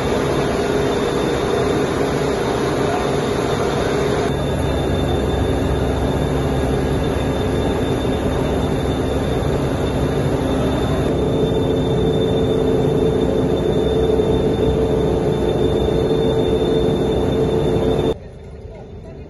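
Large pump motors hum steadily in an echoing hall.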